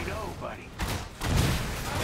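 Lasers fire with a sizzling crackle.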